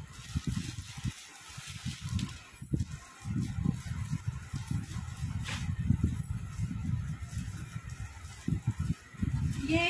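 Plastic wrapping rustles.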